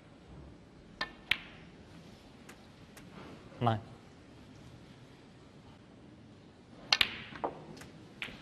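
A cue ball clicks sharply against other balls.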